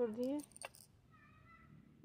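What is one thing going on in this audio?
Beads clink in a metal tin.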